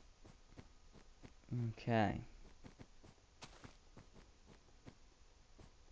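Footsteps crunch steadily on snow.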